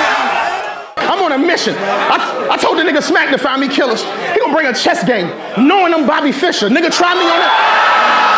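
A man raps forcefully with animation to another man.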